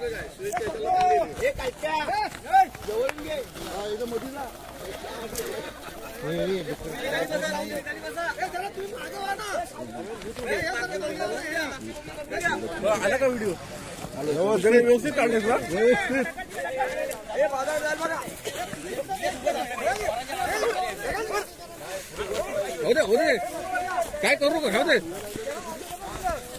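A crowd of men shouts and cheers excitedly outdoors.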